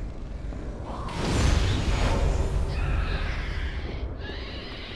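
A heavy iron gate grinds and rumbles open.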